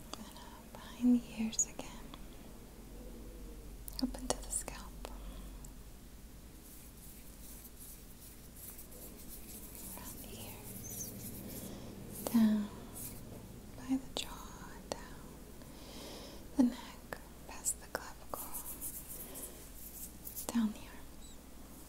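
A young woman makes soft mouth clicks close to a microphone.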